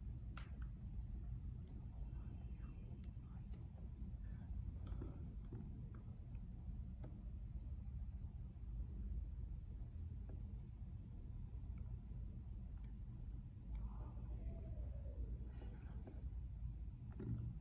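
Fingertips tap softly on a glass touchscreen.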